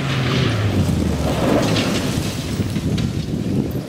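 Gravel sprays from the tyres of a rally car as it passes close by.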